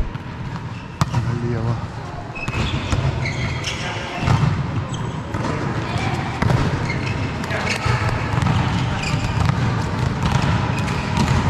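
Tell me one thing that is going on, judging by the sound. A volleyball is struck with a sharp slap in a large echoing hall.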